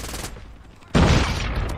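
Gunshots from a video game fire in rapid bursts.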